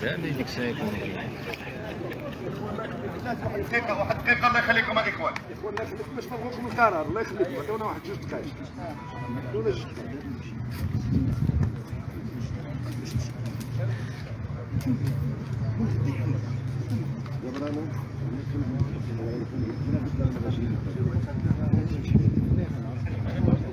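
Several men talk loudly at once close by, outdoors.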